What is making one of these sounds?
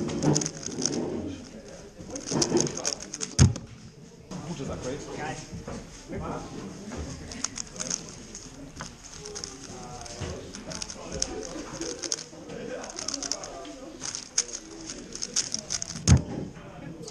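A puzzle cube clicks and rattles rapidly as it is twisted.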